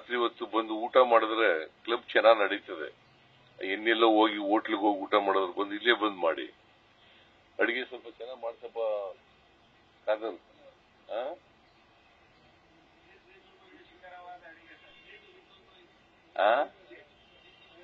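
An elderly man speaks forcefully into a microphone, heard through loudspeakers.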